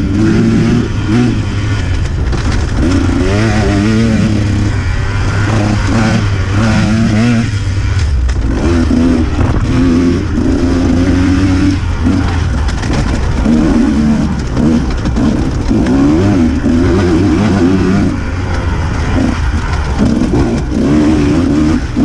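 A motorcycle engine revs up and down as the bike rides along a dirt trail.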